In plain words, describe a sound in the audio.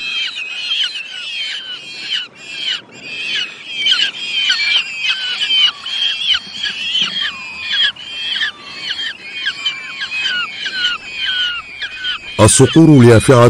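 Falcon chicks chirp and squeal rapidly, close by.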